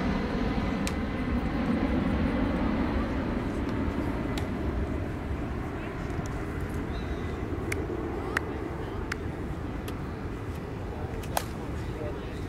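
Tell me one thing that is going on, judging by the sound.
A plastic bat smacks a ball outdoors.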